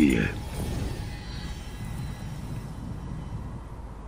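A bright shimmering chime rings out and fades.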